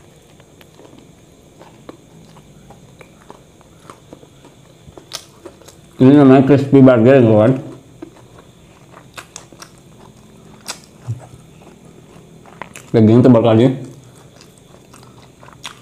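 A young man chews a burger close to a microphone.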